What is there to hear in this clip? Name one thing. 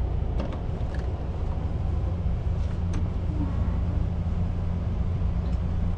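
A fold-down tray table clicks open.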